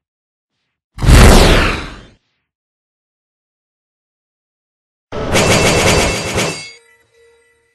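Fire blasts with a whoosh.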